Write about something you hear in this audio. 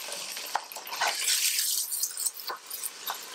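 A spoon scrapes and stirs food in a pot.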